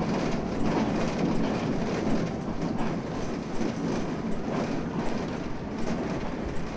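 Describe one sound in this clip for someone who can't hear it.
A bus engine rumbles steadily as the bus drives and turns.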